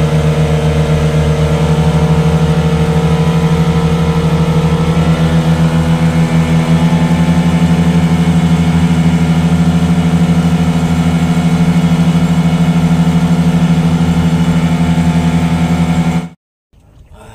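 A boat's motor drones loudly and steadily.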